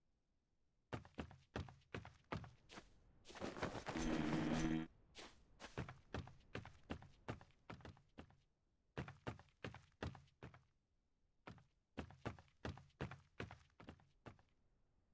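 Footsteps thud steadily on wooden floorboards.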